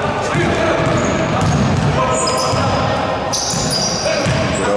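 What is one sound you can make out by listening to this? Sneakers squeak sharply on the court.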